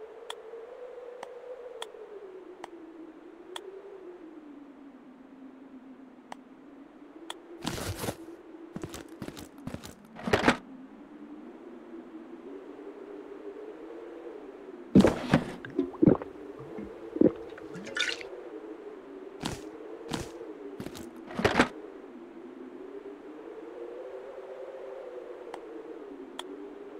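Soft clicks sound as items are moved in a game inventory.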